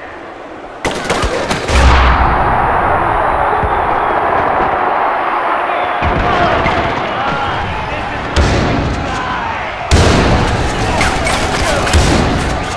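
A rifle fires in sharp bursts.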